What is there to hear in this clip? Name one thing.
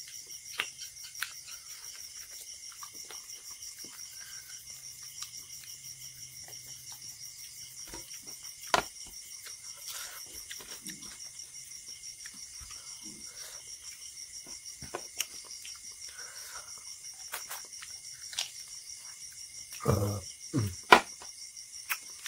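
A man chews food wetly with his mouth open, close to a microphone.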